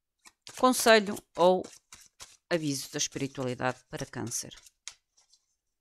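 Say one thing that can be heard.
Playing cards riffle and slap as they are shuffled.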